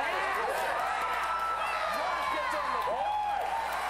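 A group of people cheer and whoop loudly.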